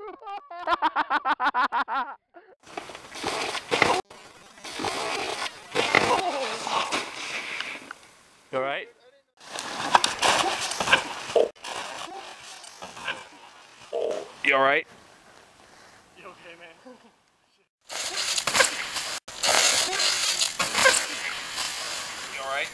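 A snowboard thuds as a rider crashes into snow.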